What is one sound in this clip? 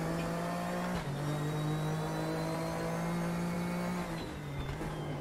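A race car engine drops in pitch as it shifts gears.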